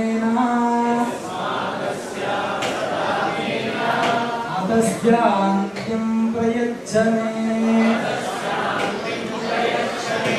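A large group of men and women chant together in unison.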